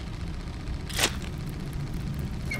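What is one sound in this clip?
A flame ignites with a soft whoosh.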